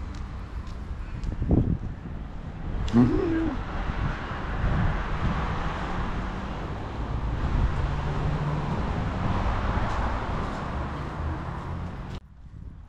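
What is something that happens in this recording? Wind blows outdoors and rustles the leaves of large trees.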